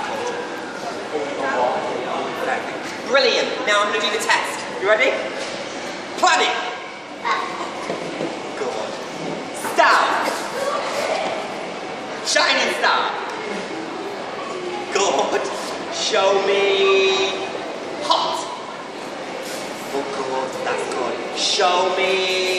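Young children chatter and call out.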